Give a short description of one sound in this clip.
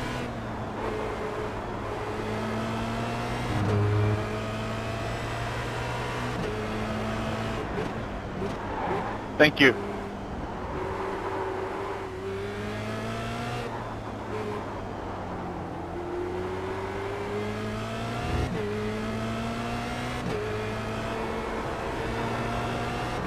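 A racing car engine revs hard, rising in pitch and dropping sharply with each gear change.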